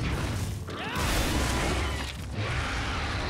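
Weapons clash with a sharp energy blast.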